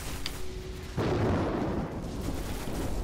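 An explosion booms with a deep roar.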